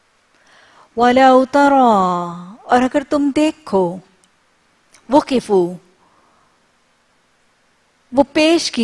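A woman speaks slowly and clearly into a close microphone, in short phrases with pauses.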